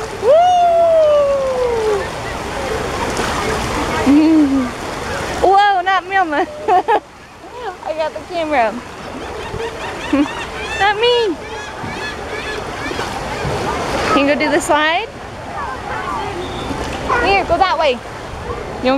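Water splashes as a child wades through it.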